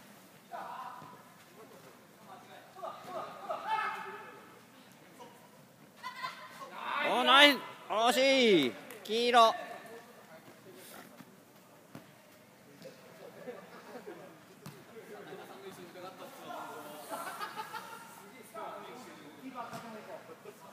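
Young women shout and call out in a large echoing hall.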